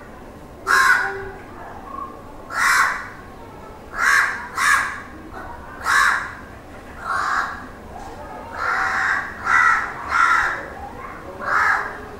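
A crow caws loudly and repeatedly, close by.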